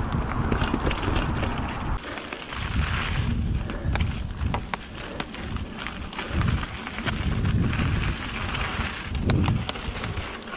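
Bicycle tyres rumble over a dirt trail covered in leaves.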